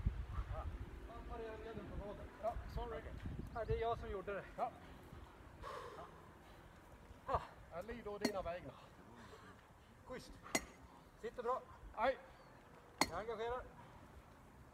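A man talks calmly nearby outdoors.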